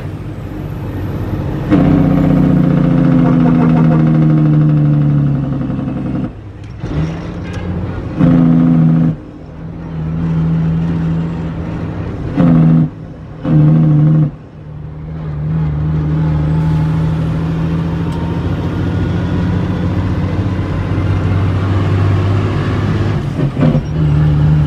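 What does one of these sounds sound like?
A vehicle engine hums and drones steadily while driving, rising and falling in pitch.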